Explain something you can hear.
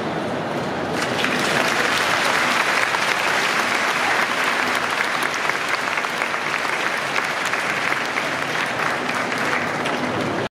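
A large crowd murmurs and cheers in a large echoing hall.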